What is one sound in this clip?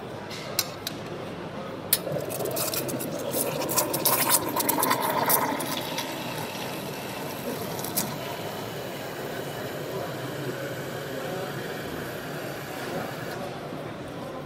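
A steam wand hisses and gurgles as it froths milk in a jug.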